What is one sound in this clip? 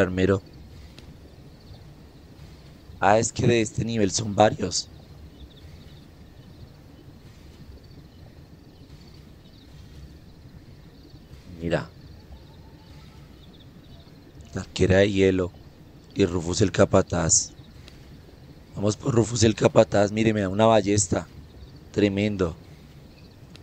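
A young man speaks calmly and casually into a close microphone, in short bursts with pauses.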